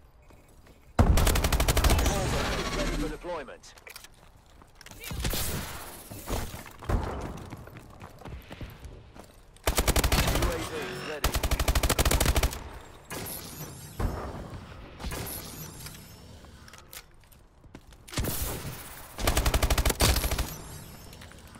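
A rifle fires rapid, loud bursts.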